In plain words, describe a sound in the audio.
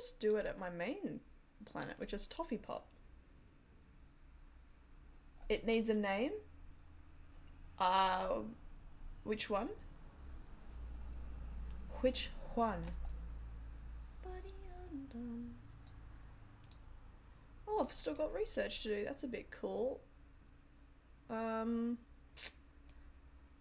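A woman speaks casually into a close microphone, in short bursts.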